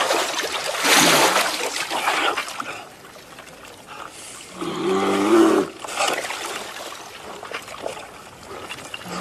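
Water splashes among floating chunks of ice.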